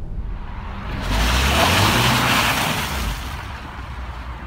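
Tyres spin and hiss loudly on snow.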